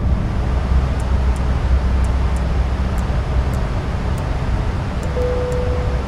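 Cockpit switches click several times.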